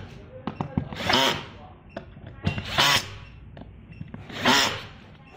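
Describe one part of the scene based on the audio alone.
A cordless screwdriver whirs in short bursts.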